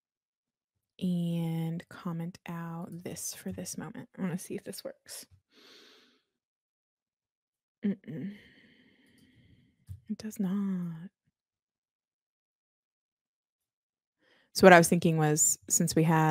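A young woman talks calmly into a close microphone, in bursts with pauses.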